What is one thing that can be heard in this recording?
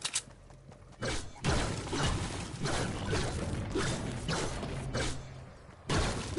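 A pickaxe strikes rock in repeated heavy blows.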